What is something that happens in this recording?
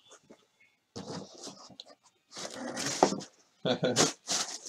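A cardboard box scrapes and thumps as it is lifted.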